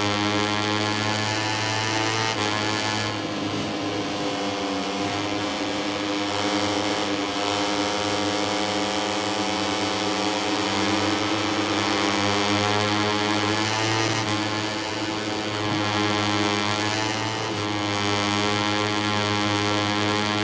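A motorcycle engine whines loudly, rising and falling in pitch as it speeds up and slows down.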